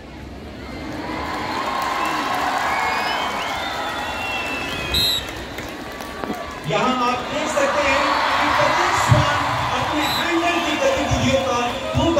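A large stadium crowd cheers and chatters in the open air.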